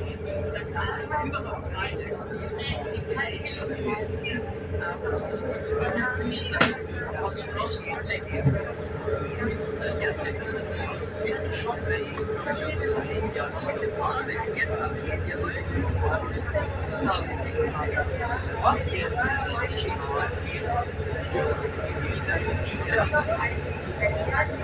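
A train rumbles steadily along the track with a low hum.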